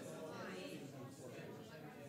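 Several men and women chat quietly at a distance in a large room.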